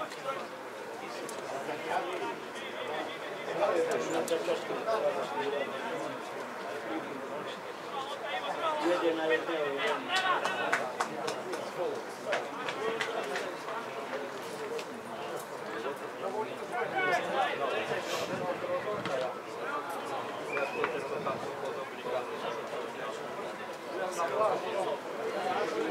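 Men shout to one another at a distance across an open outdoor pitch.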